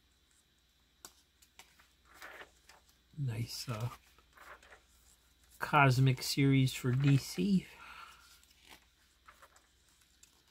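Glossy paper pages rustle and flap as they are turned.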